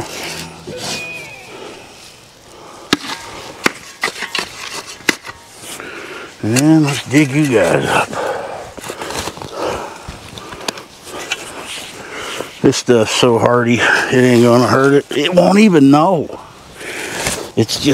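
A shovel scrapes and digs into dry soil.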